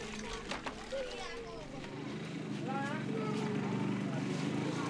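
Children's voices chatter faintly in the background.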